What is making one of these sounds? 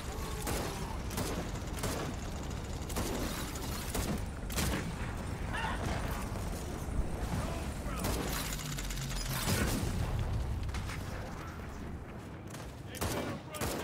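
Gunshots crack and echo in quick bursts.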